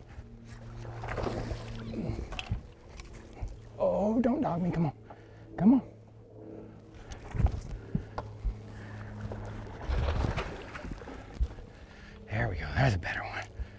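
Water splashes as a fish thrashes at the surface.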